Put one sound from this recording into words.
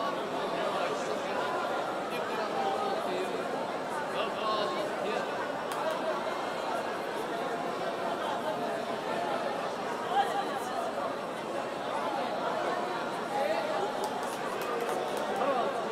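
A large crowd of men and women murmurs and prays aloud all at once.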